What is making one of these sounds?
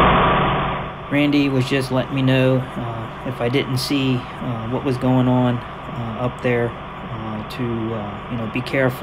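A man talks calmly nearby outdoors.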